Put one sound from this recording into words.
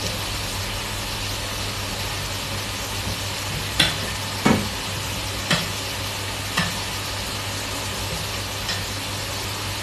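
Meat sizzles and pops in a pot.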